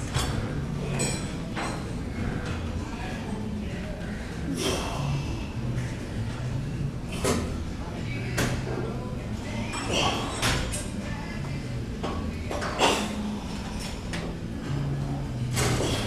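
A man breathes hard with effort.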